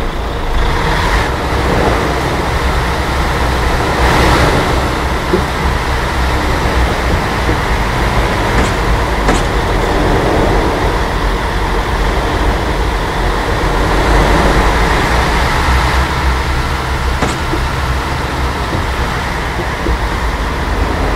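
Tyres roll and bump over a rough dirt track.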